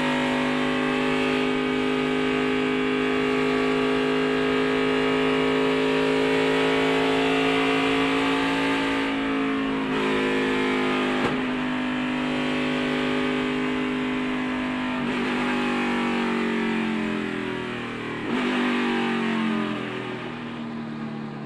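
A race car engine roars loudly at high speed, its pitch dropping and rising with gear shifts.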